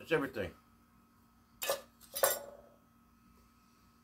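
Metal cans clink together.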